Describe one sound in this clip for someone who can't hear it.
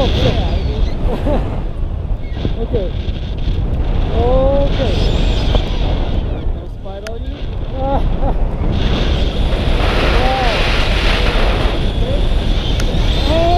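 Wind roars loudly past a microphone.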